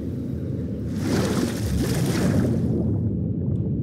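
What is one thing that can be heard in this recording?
A splash sounds as a swimmer dives under water.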